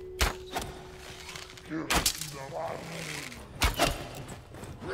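Sword blows clash sharply in quick strikes.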